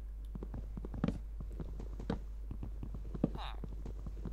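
An axe chops wood in a blocky video game.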